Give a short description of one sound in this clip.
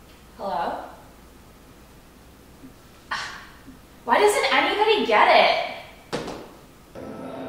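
A young woman speaks close by, calmly and with pauses.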